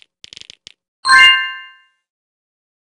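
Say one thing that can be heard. A bright game chime rings out and fades.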